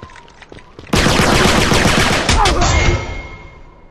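Rapid gunfire rattles loudly in bursts.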